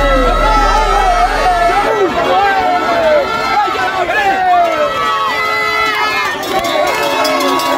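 A young man shouts with excitement close by.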